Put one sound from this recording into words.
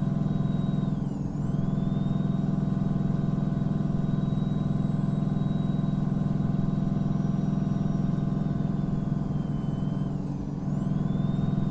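Gears shift with a brief dip in the engine's drone.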